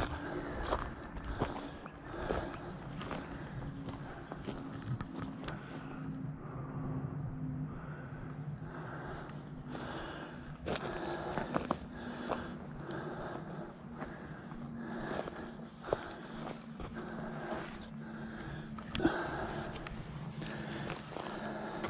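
Footsteps crunch steadily over dry leaves and twigs.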